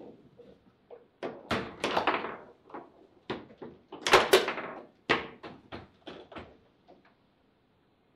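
A table football ball cracks sharply against the players and walls of the table.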